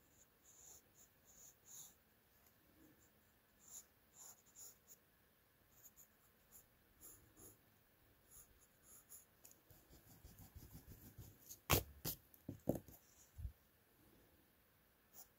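A pencil scratches softly across paper in short strokes.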